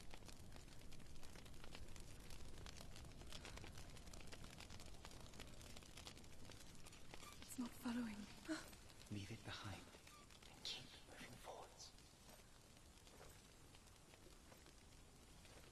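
Footsteps scuff softly on a stone floor.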